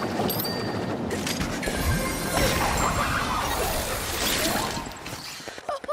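A burst of confetti bursts with a loud, rushing crackle.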